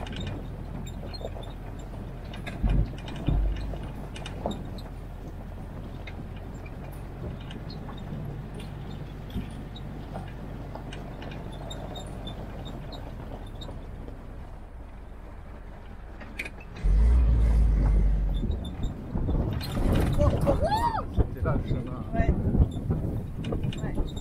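Tyres crunch over a gravel and dirt track.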